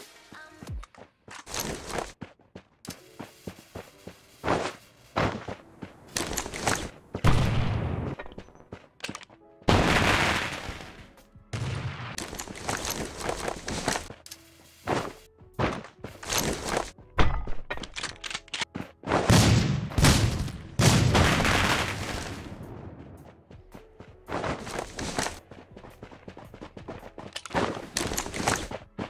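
Gunshots crack in short, sharp bursts.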